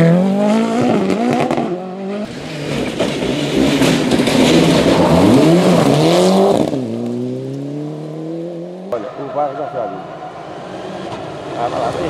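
A rally car engine roars and revs hard, shifting gears as it races past.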